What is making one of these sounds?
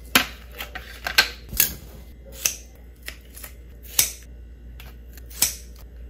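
Sticky tape is torn and pressed down with soft taps.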